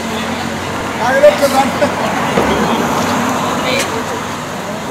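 Several men talk loudly nearby outdoors.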